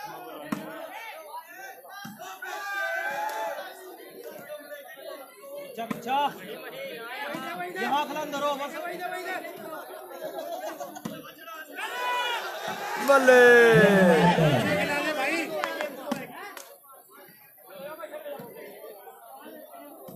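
A crowd of men chatters and shouts outdoors.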